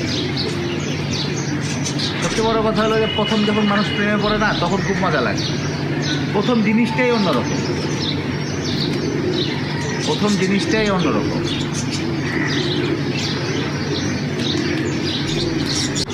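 A flock of birds flies overhead.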